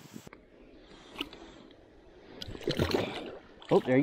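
A fish splashes in shallow water at the bank.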